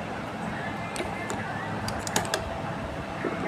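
Small metal parts of a sewing machine click.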